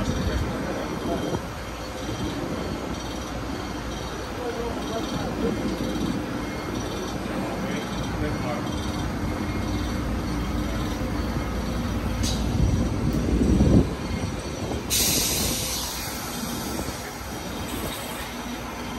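A train rumbles slowly along the tracks, heard outdoors.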